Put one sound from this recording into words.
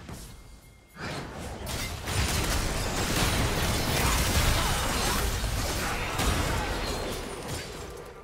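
Game spell effects crackle and blast in a fast fight.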